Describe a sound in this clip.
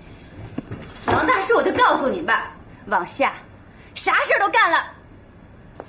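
A woman speaks sharply and angrily, close by.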